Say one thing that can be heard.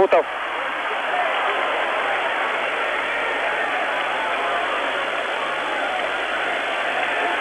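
A large crowd roars steadily in a big echoing arena.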